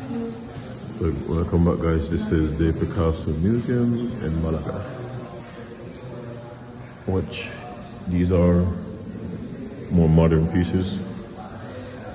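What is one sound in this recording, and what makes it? A young woman talks calmly and close by, in a quiet echoing room.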